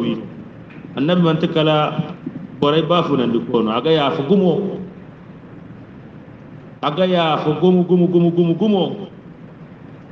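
A man chants a prayer aloud, close by.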